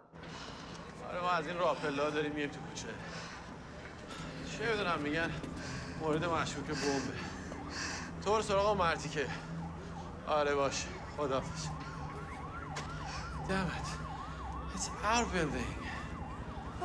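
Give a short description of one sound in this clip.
A man talks on a phone with urgency, his voice heard up close.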